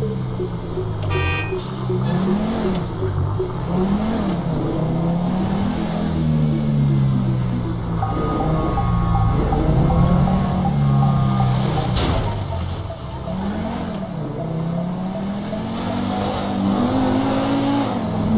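A car engine hums steadily as a car drives along a street.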